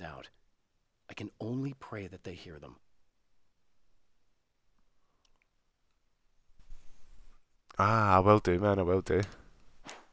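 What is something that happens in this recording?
A man reads aloud slowly and expressively, close to a microphone.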